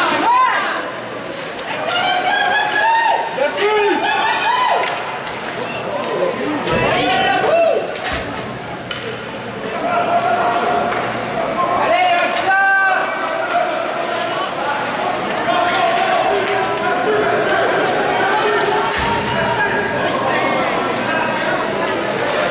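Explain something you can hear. A crowd of spectators shouts and cheers in an echoing arena.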